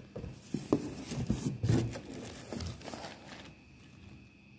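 A plastic bag crinkles in a hand.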